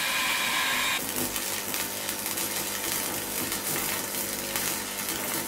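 An arc welder crackles and sizzles.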